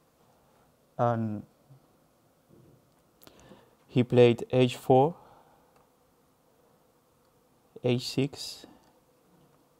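A young man speaks in short, animated bursts through a microphone.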